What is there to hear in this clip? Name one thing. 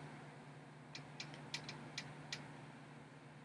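Small plastic clicks sound close by.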